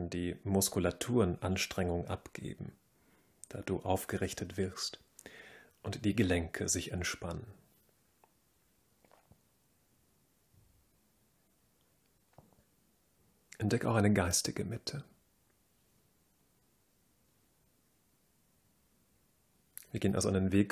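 A man speaks calmly and slowly into a close microphone, with pauses.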